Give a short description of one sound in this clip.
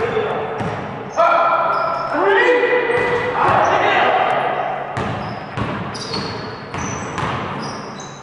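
A basketball bounces on a hard floor with dull thuds.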